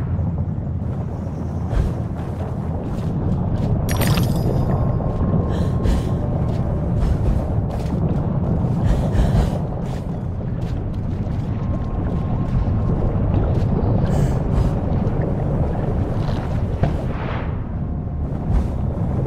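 A soft whoosh sweeps by.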